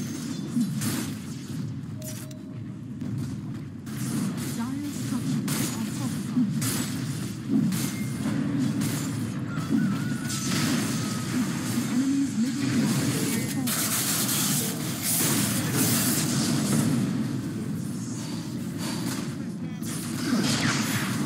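Fantasy battle sound effects clash and crackle with magic blasts.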